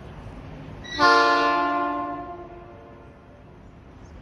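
A train horn blares loudly and then fades.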